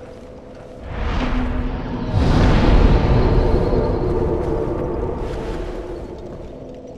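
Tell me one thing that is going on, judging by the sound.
A bonfire flares up with a loud whoosh and crackle.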